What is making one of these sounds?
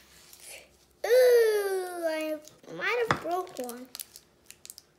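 A young boy speaks in a high voice close by.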